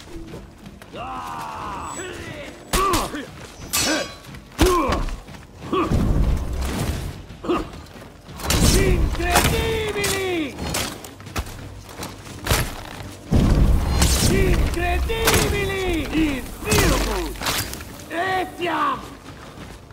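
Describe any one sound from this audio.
Armoured fighters grunt and yell as they fight.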